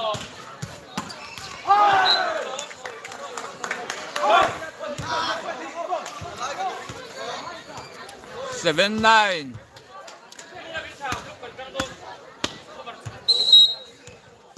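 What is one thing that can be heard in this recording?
Young men on a court shout to each other loudly.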